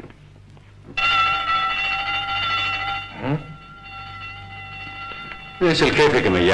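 An electric bell rings steadily.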